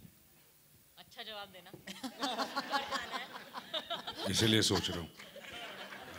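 A man speaks into a microphone through loudspeakers with a light, joking tone.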